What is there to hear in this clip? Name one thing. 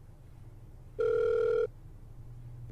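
A phone rings with a steady tone.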